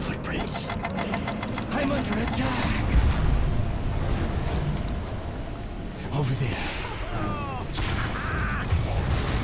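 Game spells and combat effects crackle and blast.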